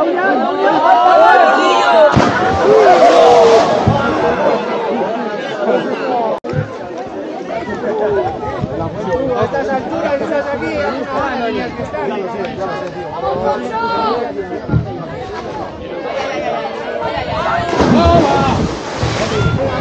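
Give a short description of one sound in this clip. A body splashes into a river.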